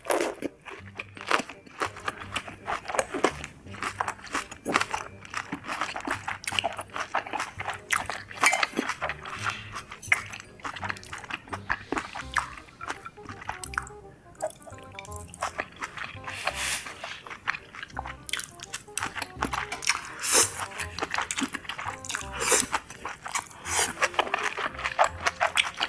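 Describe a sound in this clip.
A young woman chews and smacks her lips loudly, close to a microphone.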